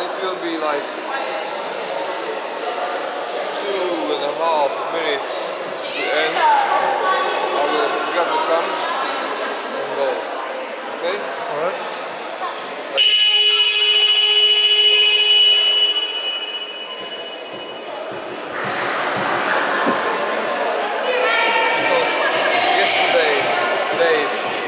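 A crowd of young people chatters and calls out in a large echoing hall.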